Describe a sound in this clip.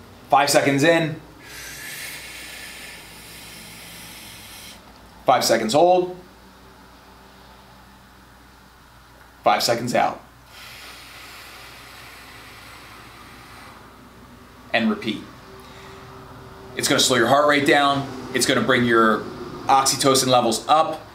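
A man speaks calmly and clearly into a nearby microphone, with pauses between phrases.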